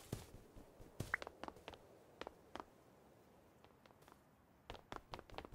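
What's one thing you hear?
Soft clicking pops sound as blocks are placed one after another.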